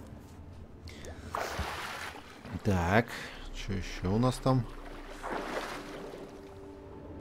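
Water splashes as a swimmer dives under the surface.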